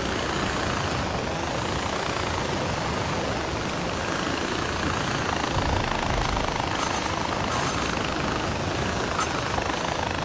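A zip line pulley whirs steadily along a cable.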